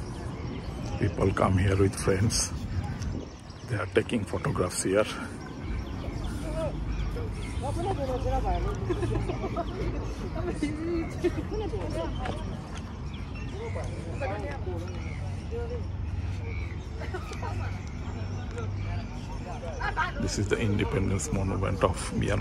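Young women talk and call out nearby outdoors.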